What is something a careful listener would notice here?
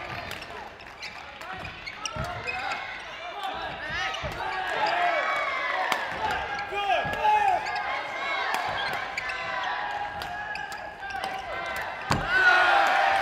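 Rackets smack a shuttlecock back and forth in a rally.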